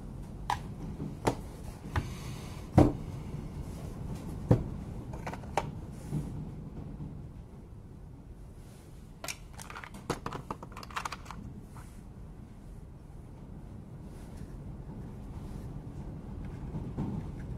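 Plastic parts knock and clatter as they are handled.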